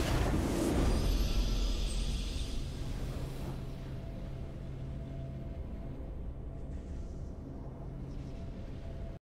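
A triumphant game fanfare swells and then fades.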